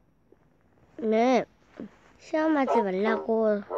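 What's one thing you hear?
A young child speaks in a high voice close to a microphone.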